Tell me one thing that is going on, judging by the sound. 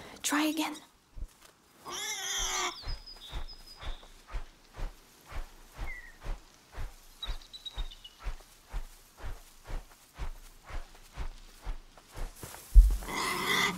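Footsteps swish steadily through tall grass.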